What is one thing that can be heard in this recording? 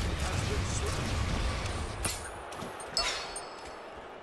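Sword strikes and magic blasts crash in a fight.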